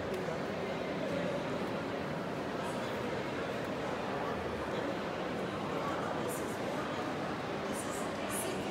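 A crowd of people chatter, echoing in a large hall.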